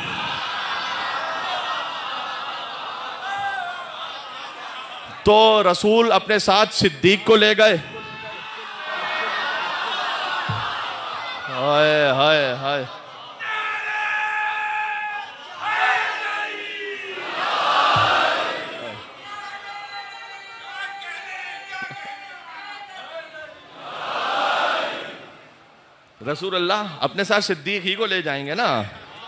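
A man speaks with animation into a microphone, heard through a loudspeaker in an echoing hall.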